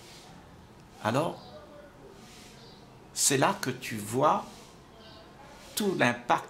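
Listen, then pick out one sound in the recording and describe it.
An elderly man speaks calmly and warmly, close to a microphone, with pauses.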